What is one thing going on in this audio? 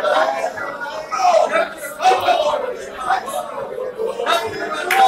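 An elderly man sings loudly nearby.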